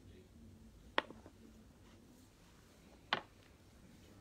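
A small bottle is set down on a table with a sharp knock.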